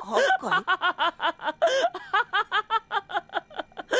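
A young man speaks in a questioning, surprised voice.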